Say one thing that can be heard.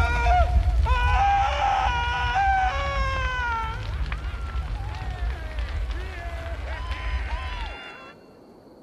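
A large fire roars and crackles.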